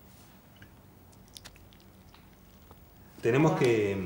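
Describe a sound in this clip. Hot water pours from a thermos into a small cup.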